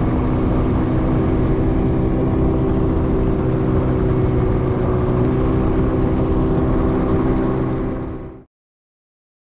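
Water splashes against a moving boat's hull.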